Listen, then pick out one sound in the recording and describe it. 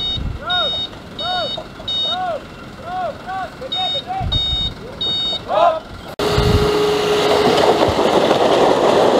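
A heavy truck engine rumbles.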